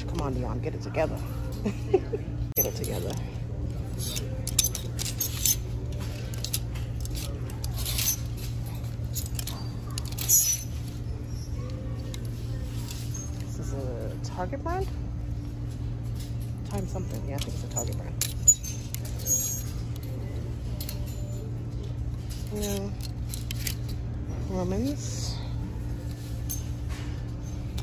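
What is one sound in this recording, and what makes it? Plastic hangers click and scrape along a metal rail.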